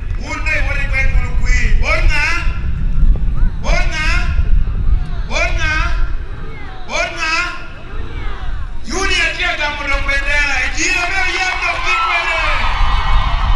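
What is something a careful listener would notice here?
An elderly man speaks with animation into a microphone, heard through loudspeakers outdoors.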